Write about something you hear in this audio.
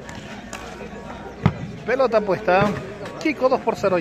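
A volleyball is struck with a hand, making a sharp slap.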